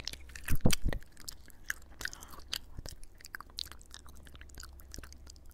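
A young woman makes soft mouth sounds close to a microphone.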